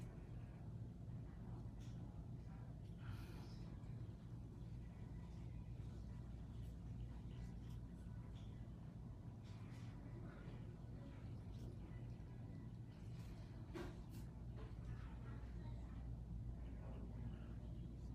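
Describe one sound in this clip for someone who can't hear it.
A brush strokes softly across a fingernail.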